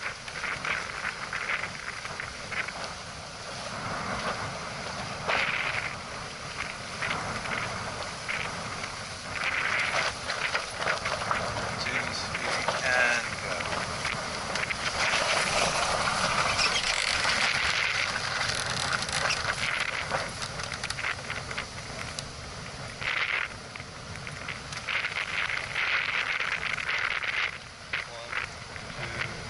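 Wind buffets the microphone in gusts.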